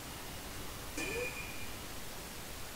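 A magical shimmering chime rings out with a short rising tone.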